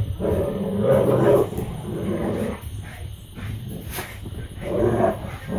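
Dogs growl playfully as they wrestle.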